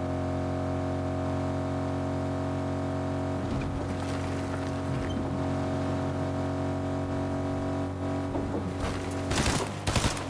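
A vehicle engine hums steadily as it drives.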